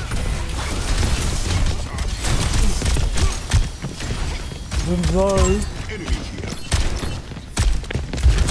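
Guns fire in rapid bursts with sharp impacts.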